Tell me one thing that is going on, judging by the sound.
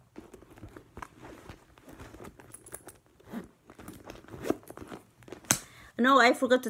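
Handling of a handbag rustles and clicks.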